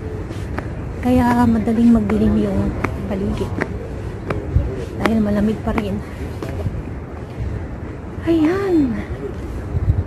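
A young woman speaks close to the microphone, calmly.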